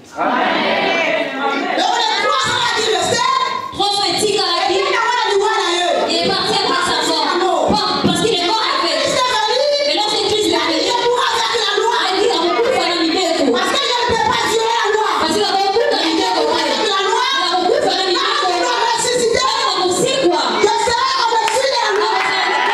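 A second woman sings along through another microphone.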